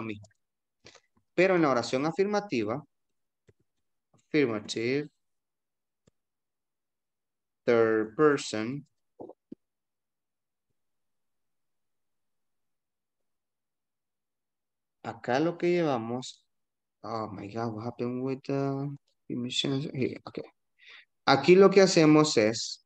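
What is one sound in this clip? A young man speaks calmly over an online call, in short bursts with pauses.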